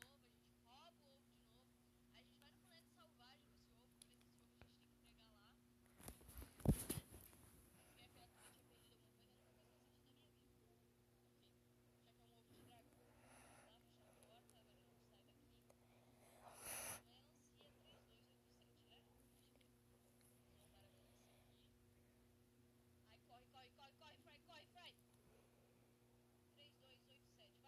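A young woman talks quietly and with animation, close to a microphone.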